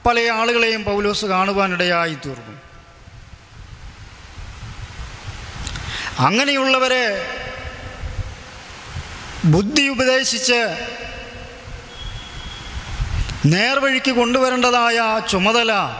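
A man speaks with feeling into a microphone, in short phrases with pauses.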